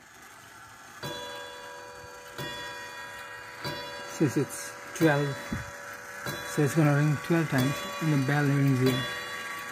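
A wall clock strikes the hour with ringing gong tones.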